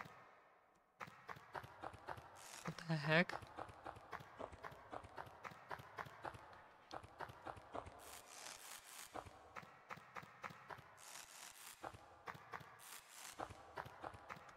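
Soft, quick ticking steps of a game character climbing repeat steadily.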